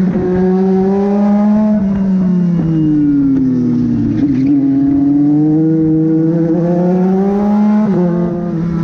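A race car engine roars loudly close by, its pitch dropping as the car slows and rising again as it speeds up.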